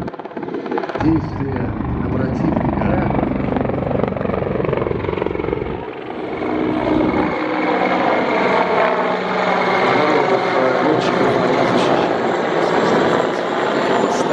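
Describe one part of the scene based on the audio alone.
Helicopter rotors beat loudly overhead as helicopters fly past.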